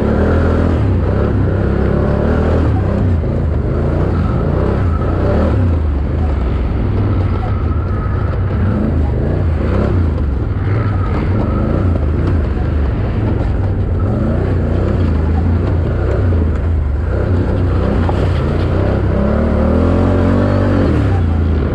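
A dirt bike engine revs hard and changes pitch constantly, close up.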